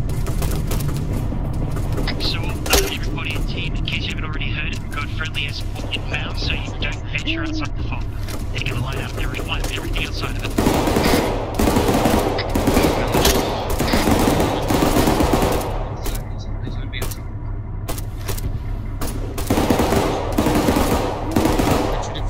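A helicopter's rotor thumps and drones steadily throughout.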